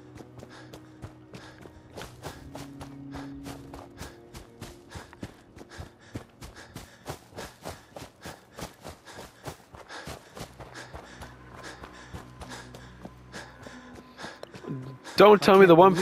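Footsteps crunch steadily over dry ground and gravel.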